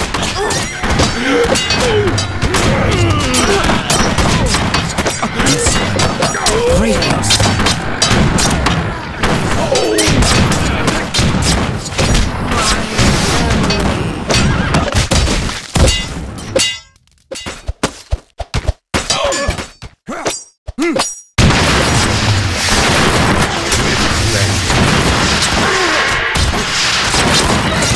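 Swords clash and clang in a noisy battle.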